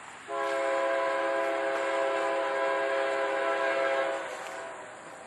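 A train horn blows loudly and steadily, far off.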